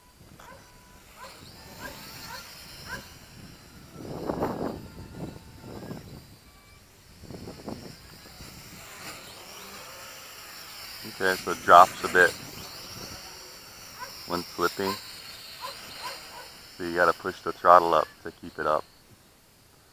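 A small drone's rotors buzz as it flies close by outdoors.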